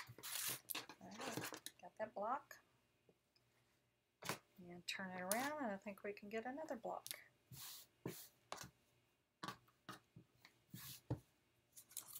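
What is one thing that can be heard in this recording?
Fabric rustles as it is handled and smoothed.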